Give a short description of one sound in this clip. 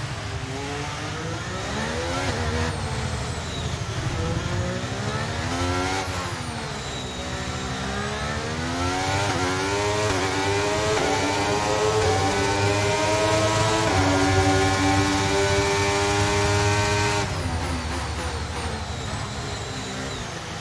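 A racing car engine screams, rising and falling in pitch as it shifts gears and brakes.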